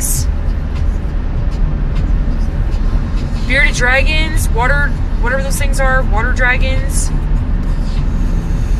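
A car's engine and tyres rumble steadily on a highway.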